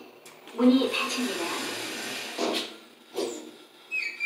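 Elevator doors slide shut.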